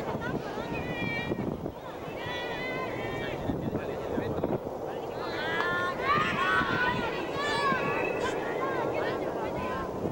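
Young children squeal and laugh loudly.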